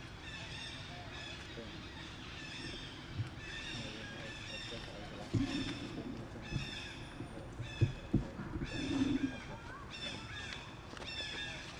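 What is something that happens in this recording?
Monkeys rustle through dry leaves on the ground.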